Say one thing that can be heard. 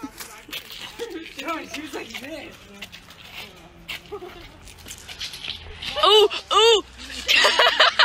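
Several teenagers laugh and shout outdoors.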